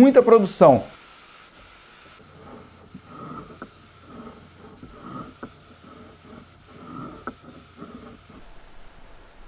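A spray gun hisses steadily.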